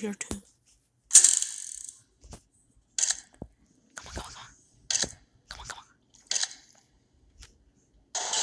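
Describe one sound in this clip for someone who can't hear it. A combination dial clicks and scrapes as it is turned.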